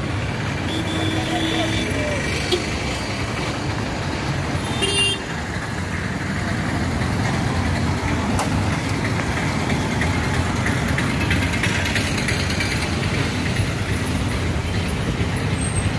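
Rickshaw engines putter and traffic hums along a busy street.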